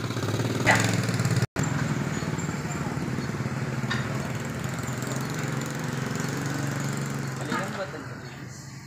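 A motorbike engine idles close by with a steady low rumble.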